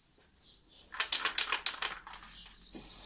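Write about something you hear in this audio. A spray can hisses in a short burst.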